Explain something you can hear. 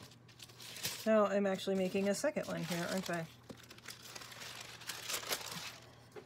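Paper rustles as a sheet is lifted and moved.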